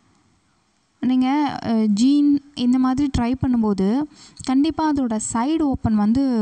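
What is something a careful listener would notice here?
A young woman sings.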